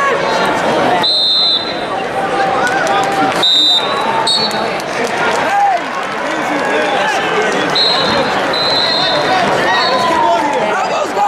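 A referee's whistle blows in short shrill blasts.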